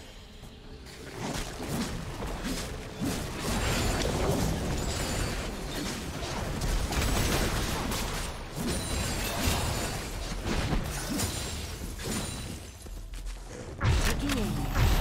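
Magic spells crackle and burst in a busy fantasy battle.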